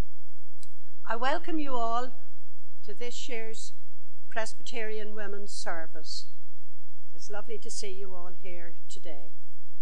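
A middle-aged woman reads out calmly into a microphone.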